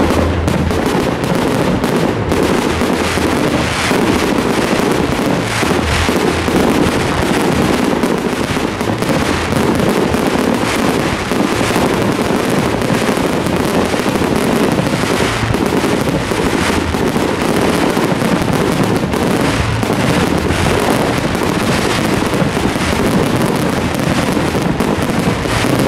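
Fireworks crackle and fizzle overhead.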